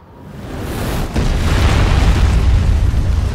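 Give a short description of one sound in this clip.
A heavy body lands with a booming crash.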